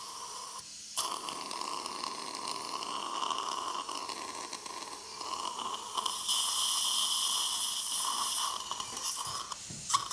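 A dental drill whines at high speed.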